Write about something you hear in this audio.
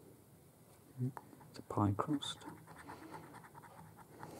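A coin scratches rapidly across a scratch card.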